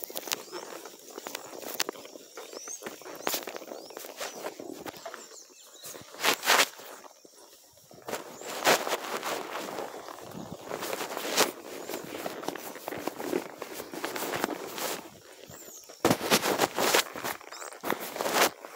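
A horse's hooves thud on a dirt track.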